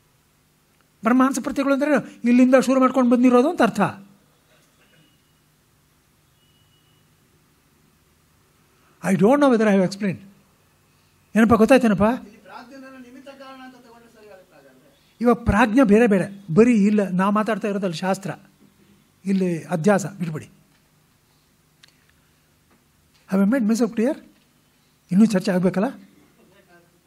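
An elderly man chants in short phrases, close to a microphone.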